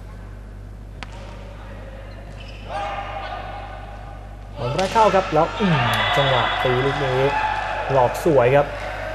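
A volleyball is struck by hand with sharp smacks in a large echoing hall.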